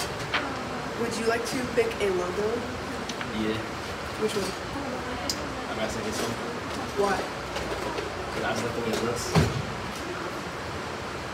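A teenage boy asks questions into a handheld microphone.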